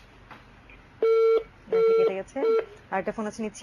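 A telephone gives short steady beeps.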